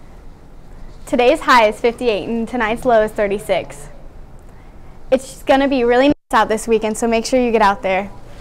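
A young woman speaks calmly into a microphone, presenting.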